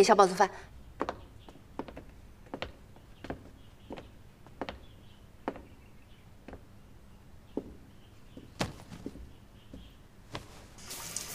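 Hard shoes tap on a wooden floor in slow footsteps.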